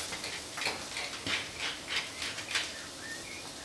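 A pepper mill grinds with quick crunching clicks.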